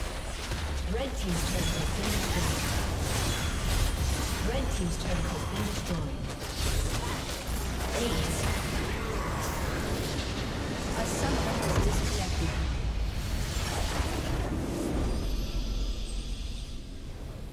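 Video game battle effects blast and crackle loudly.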